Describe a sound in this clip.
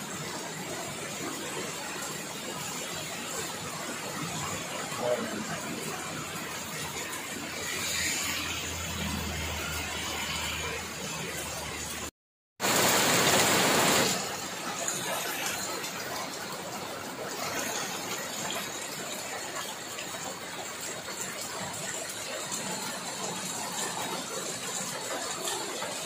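Steady rain falls and patters on the ground outdoors.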